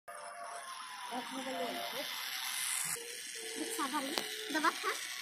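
A small toy car's electric motor whirs steadily as it drives.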